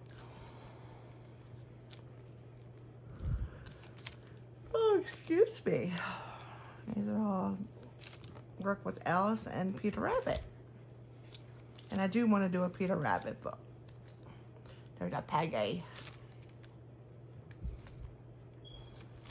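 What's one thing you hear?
Small paper cards shuffle and rustle between fingers.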